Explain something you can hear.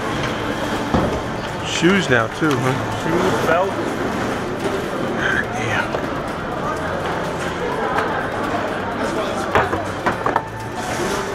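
Plastic trays clatter on metal rollers.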